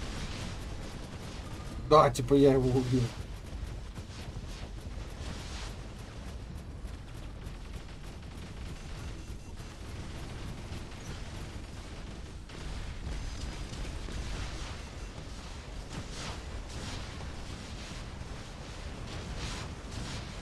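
Large mechanical robots rumble and clank as they stomp about.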